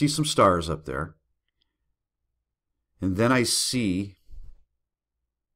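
A middle-aged man speaks expressively close to a microphone, in short bursts with pauses.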